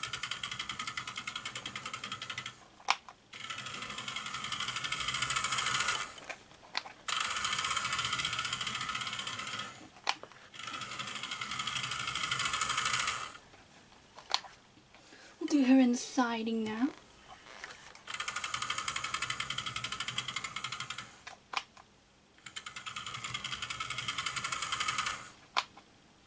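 A toy train whirs along a track in bursts.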